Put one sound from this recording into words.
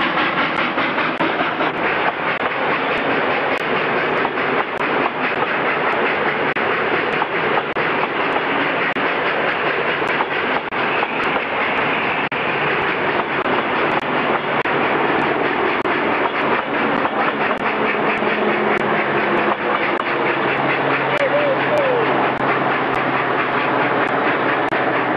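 A steam locomotive chuffs hard as it pulls a train uphill.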